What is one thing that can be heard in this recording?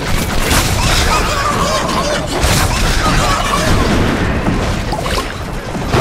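A magic spell bursts with a whooshing blast.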